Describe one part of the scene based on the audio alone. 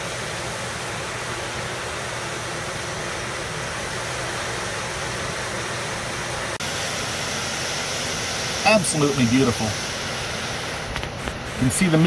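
A waterfall rushes and splashes steadily close by.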